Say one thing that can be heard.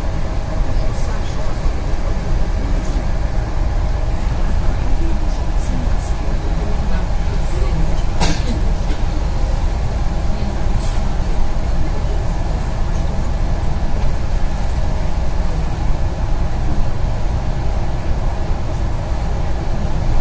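Something rattles and knocks inside a bus now and then.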